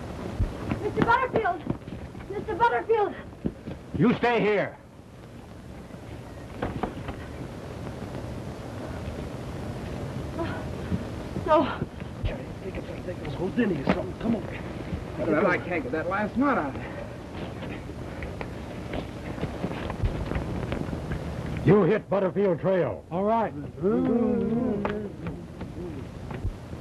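A man speaks calmly nearby, heard through an old, hissy recording.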